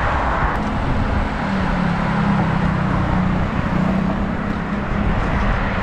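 A motorcycle engine hums nearby.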